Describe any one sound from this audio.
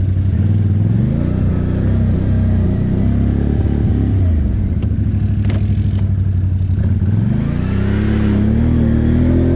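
An ATV engine rumbles and revs up and down.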